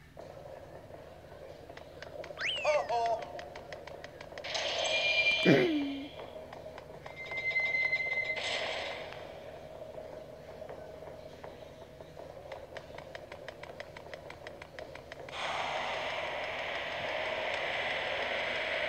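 Video game music plays.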